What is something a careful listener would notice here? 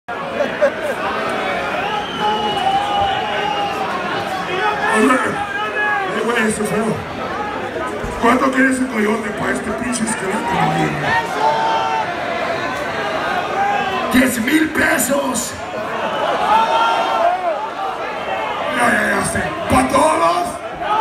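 A rock band plays loudly in a large hall.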